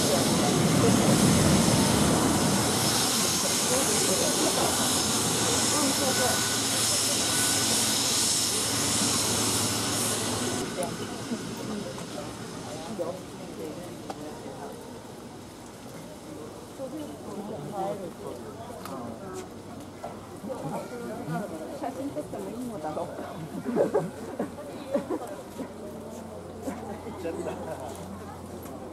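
A jet's engines whine loudly close by as it rolls past, then fade as it moves away.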